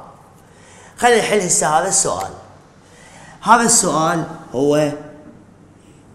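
A man speaks clearly and with emphasis, close by.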